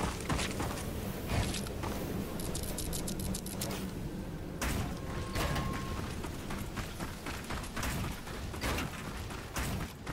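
Footsteps run over hard ground.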